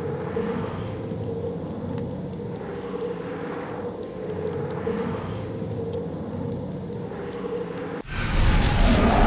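Blades whoosh and slash through the air.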